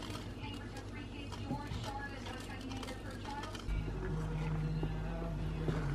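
A wooden spatula scrapes and stirs liquid in a pan.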